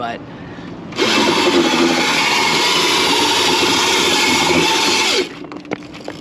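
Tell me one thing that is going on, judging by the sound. A small electric motor whirs loudly, then stops.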